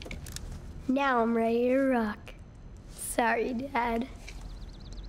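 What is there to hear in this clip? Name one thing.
A young boy speaks calmly and apologetically, close by.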